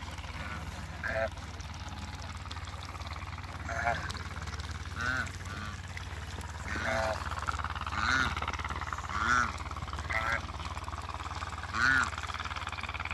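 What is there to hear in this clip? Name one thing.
Geese honk and cackle nearby.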